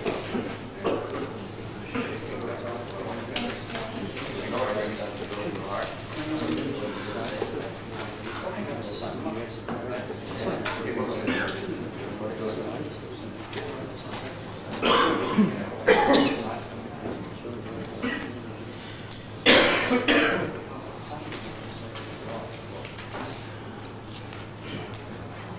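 Men talk quietly in a large echoing room.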